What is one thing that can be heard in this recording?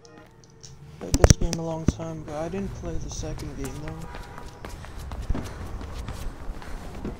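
Footsteps run across a hard rooftop.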